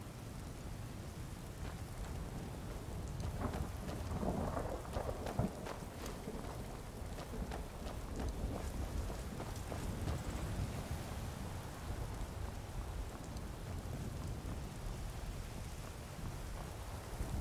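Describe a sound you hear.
Armoured footsteps crunch on stone and gravel.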